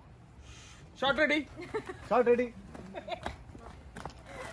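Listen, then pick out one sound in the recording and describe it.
A man speaks and laughs, close by.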